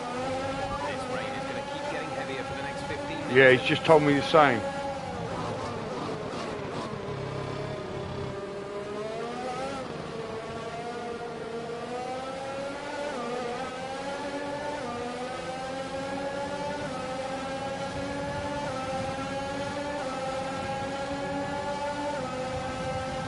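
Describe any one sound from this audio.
A racing car engine whines at high revs, its pitch rising and dropping with gear changes.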